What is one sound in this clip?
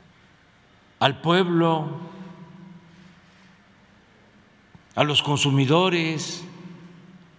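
An elderly man speaks emphatically into a microphone in short bursts, with pauses.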